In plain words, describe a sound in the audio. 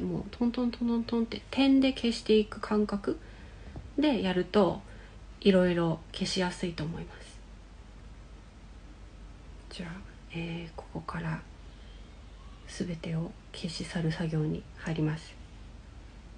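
A young woman talks calmly close to the microphone, in short bursts.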